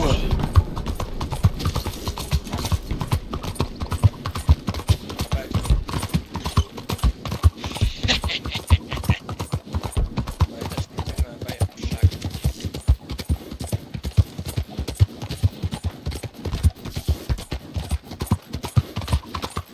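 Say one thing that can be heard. Horse hooves clop quickly on a cobbled street.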